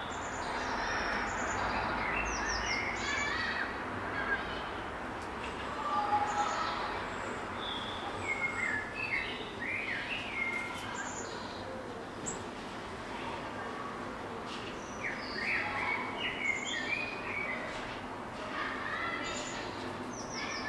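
Small birds chirp and twitter close by.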